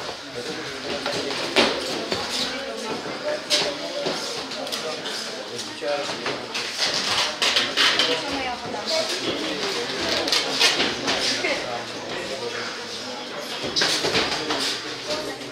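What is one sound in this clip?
Feet shuffle and stomp on a canvas ring floor.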